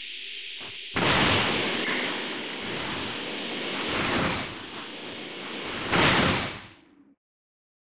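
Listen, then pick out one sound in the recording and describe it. An energy blast roars and crackles.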